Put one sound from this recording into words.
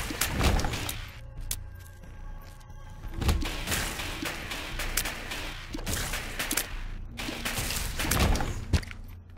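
Wet splats and soft pops of game sound effects repeat quickly.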